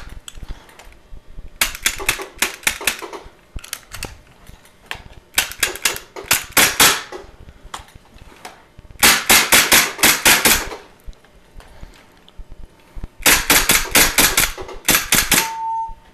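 A pistol trigger clicks in quick bursts.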